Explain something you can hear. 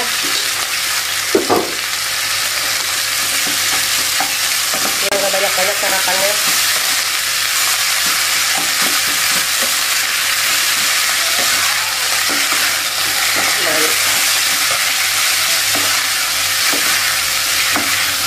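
A spatula scrapes and knocks against a pan as food is stirred.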